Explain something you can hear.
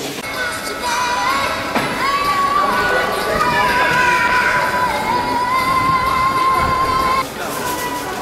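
A brass band plays a lively tune.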